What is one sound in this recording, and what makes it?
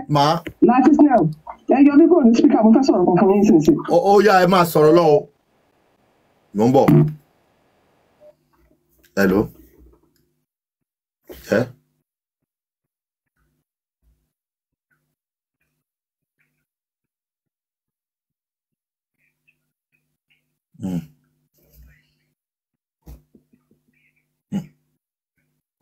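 A man speaks calmly into a microphone, close by, in short bursts with pauses.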